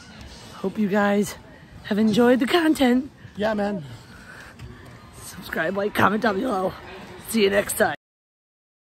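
A woman speaks cheerfully, close by.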